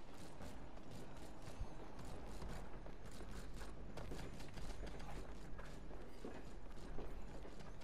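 A gun fires in rapid repeated shots.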